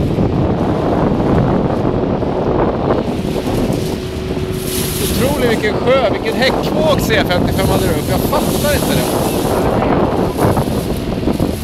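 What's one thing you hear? Wind buffets loudly throughout.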